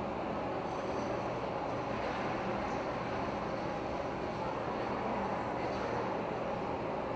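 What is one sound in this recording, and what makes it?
Ice skate blades scrape and glide across ice in a large echoing rink.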